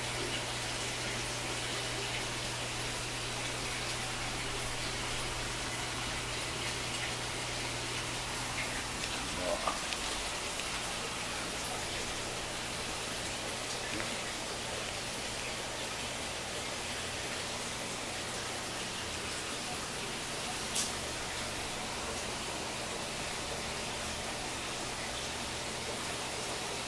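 An aquarium pump hums steadily.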